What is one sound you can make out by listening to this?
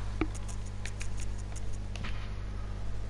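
Menu selections click in quick succession.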